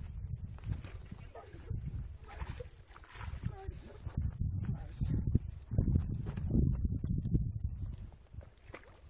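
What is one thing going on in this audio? A hooked bass thrashes and splashes in shallow water.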